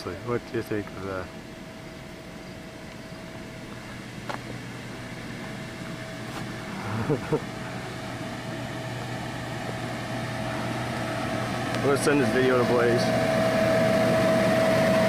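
An electric blower whines as it runs.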